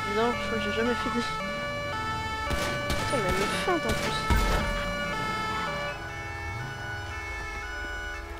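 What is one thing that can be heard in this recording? A police siren wails and sweeps up and down.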